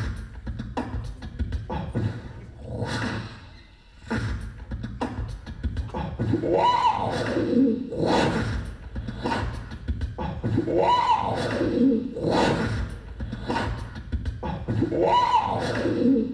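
A keyboard plays music with a repeating, swooping phrase.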